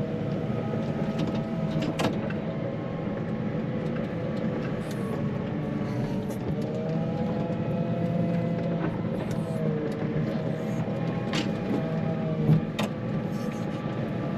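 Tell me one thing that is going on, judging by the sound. A snow plough blade scrapes along the ground.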